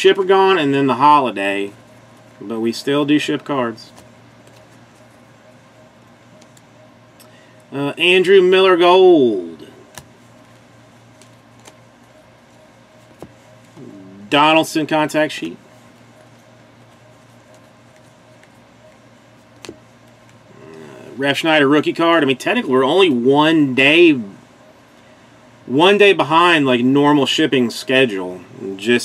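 Trading cards slide and flick against each other in a person's hands.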